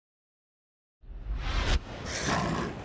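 A bright whooshing sweep plays as a fight begins.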